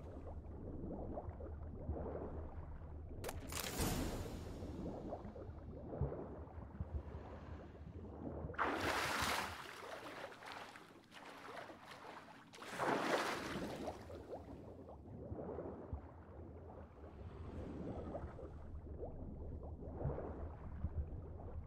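Muffled water churns and gurgles as someone swims underwater.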